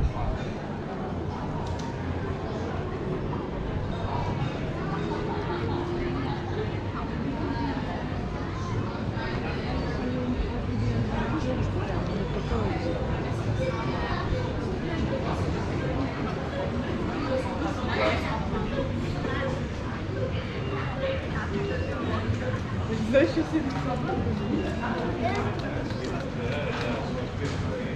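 Footsteps walk steadily on stone paving.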